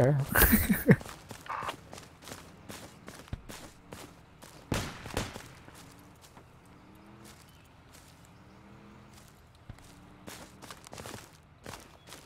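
Footsteps swish through grass at a steady pace.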